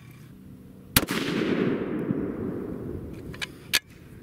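A rifle fires a single loud shot that echoes across open ground.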